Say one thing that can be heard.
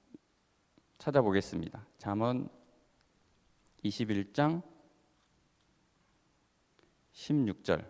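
A man speaks slowly and calmly into a microphone, with long pauses.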